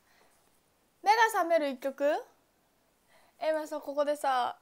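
A young woman speaks close to a microphone in a high, lively voice.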